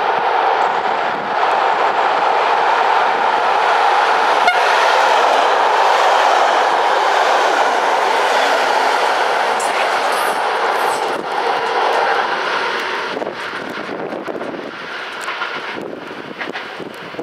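A diesel train rumbles past with a loud engine drone.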